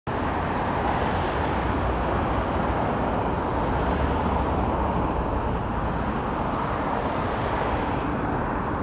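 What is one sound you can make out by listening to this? Cars drive by on a road in the distance.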